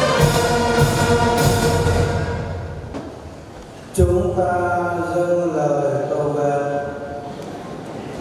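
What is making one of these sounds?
A large congregation sings together in an echoing hall.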